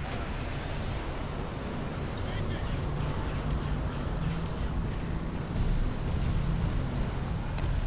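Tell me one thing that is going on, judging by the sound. A flying craft's engine hums and whooshes steadily.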